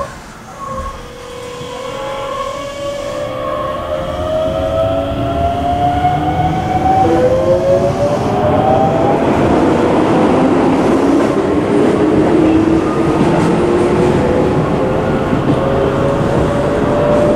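An electric train motor whines, rising steadily in pitch as the train speeds up.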